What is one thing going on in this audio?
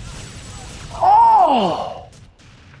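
An energy blast explodes with a falling whine.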